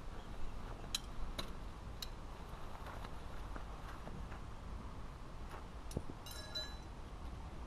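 Tent poles clatter.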